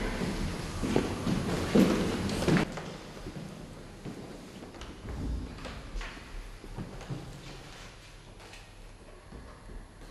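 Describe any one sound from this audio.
Footsteps tap on a wooden stage.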